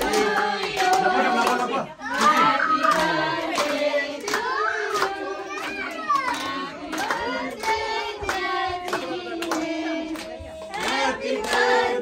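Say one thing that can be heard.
People clap their hands in rhythm.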